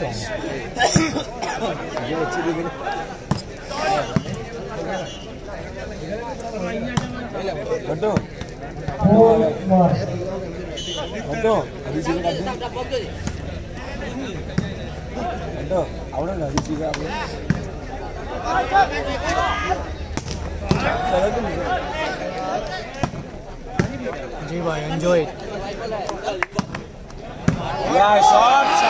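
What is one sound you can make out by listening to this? Men on the court shout calls to each other.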